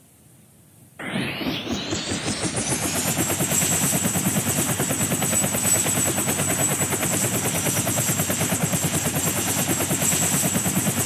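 A helicopter's rotor spins up and thumps.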